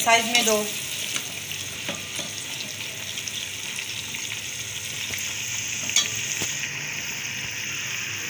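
A metal ladle scrapes against a metal pot.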